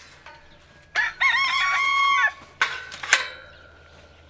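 A sheep bleats loudly up close.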